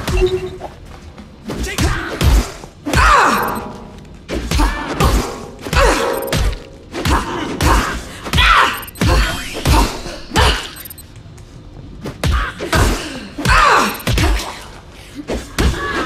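Punches and kicks land with heavy thuds in quick bursts.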